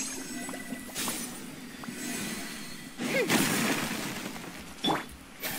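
Magical energy crackles and whooshes in a burst.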